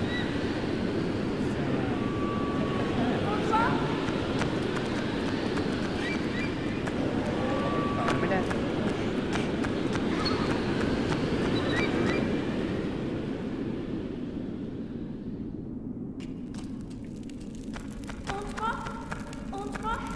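Footsteps patter on a stone floor.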